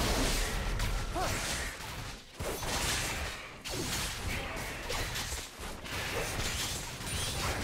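Magic spells whoosh and crackle in a fast video game fight.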